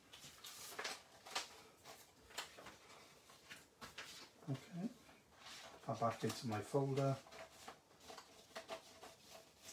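Paper rustles and crinkles as it is handled close by.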